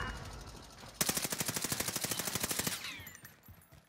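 A gun fires in a rapid, steady burst.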